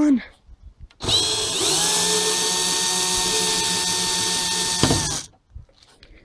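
A cordless drill whirs, backing out a screw from a metal window frame.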